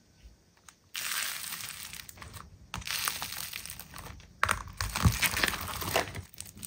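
Foam beads crunch and rustle under a pressing hand.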